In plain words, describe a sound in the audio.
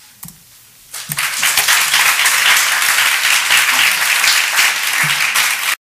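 An audience applauds loudly in a room.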